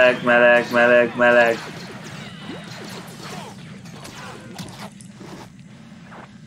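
Laser blasters fire in short bursts in a video game.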